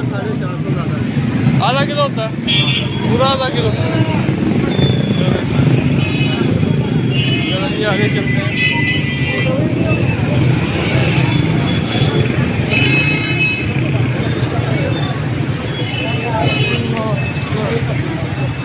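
A bustling crowd murmurs outdoors.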